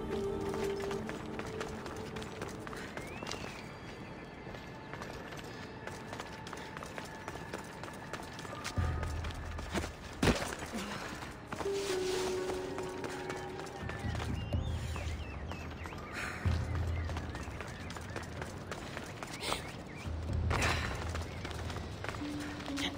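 Footsteps scuff and scrape on rock as a climber clambers up a cliff.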